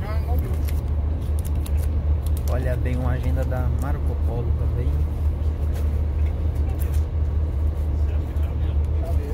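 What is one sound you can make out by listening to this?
A plastic wrapper crackles in a hand.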